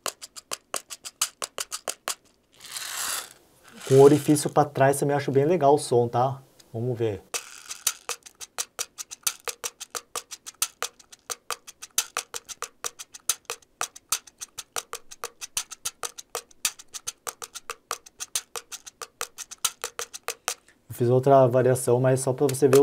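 A small wooden object clicks rapidly as it is turned in the hands.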